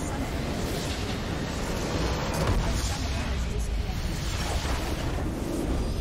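A large explosion booms as a structure is destroyed.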